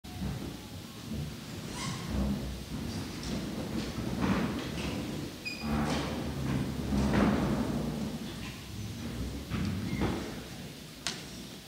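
Men and women talk casually at a distance in a large echoing hall.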